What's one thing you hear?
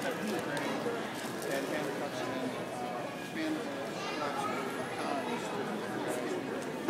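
People chatter nearby.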